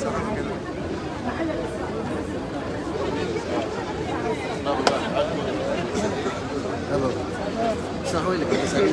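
A crowd of men and women murmurs and chatters nearby outdoors.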